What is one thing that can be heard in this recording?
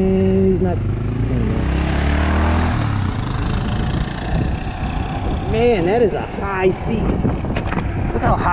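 Wind rumbles loudly past a moving motorcycle.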